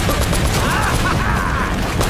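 An explosion booms up ahead.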